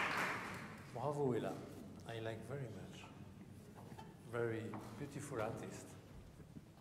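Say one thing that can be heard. A man speaks calmly to the audience in an echoing hall.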